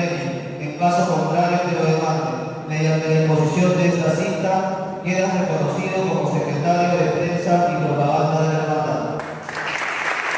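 A man speaks steadily through a microphone.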